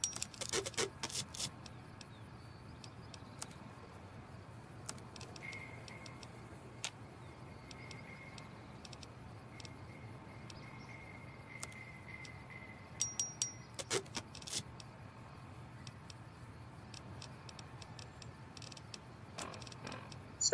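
Short, soft menu clicks tick again and again.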